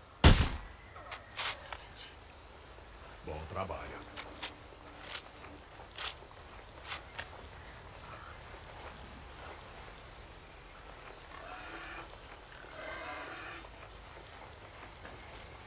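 Footsteps run over dirt and gravel.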